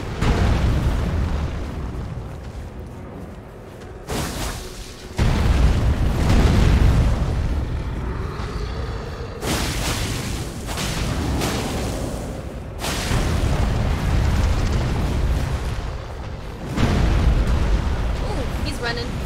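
Heavy thuds and crashes ring out in a fierce fight.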